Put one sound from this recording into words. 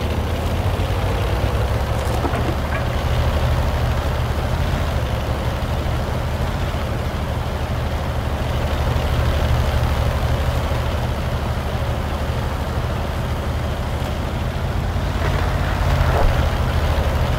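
Tank tracks clank and rattle over the ground.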